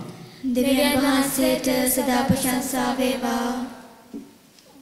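A man sings a chant through a microphone in an echoing hall.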